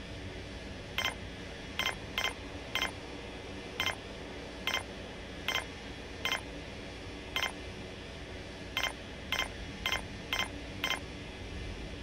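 Short electronic beeps ring out one after another.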